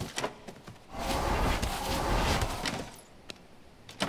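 A loud magical whoosh swells and fades.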